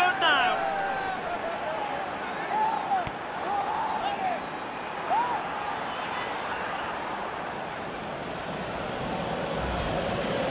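A large crowd cheers and whistles loudly in a stadium.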